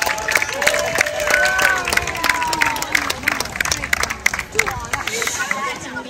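A crowd claps outdoors.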